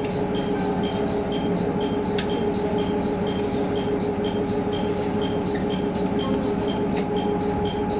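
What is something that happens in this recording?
A train hums and rumbles steadily as it rolls slowly along.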